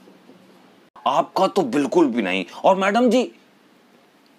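A young man speaks close to a microphone, expressively.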